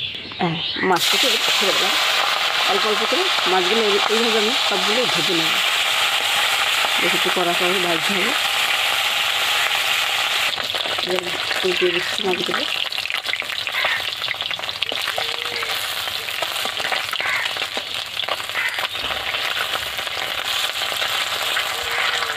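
Fish sizzles loudly in hot oil.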